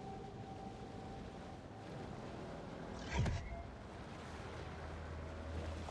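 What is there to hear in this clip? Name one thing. Water splashes and sloshes as a large fish swims at the surface.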